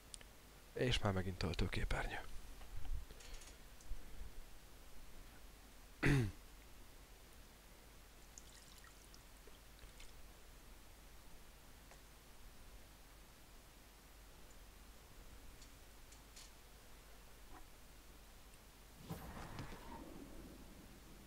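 A man speaks in short bursts close to a microphone.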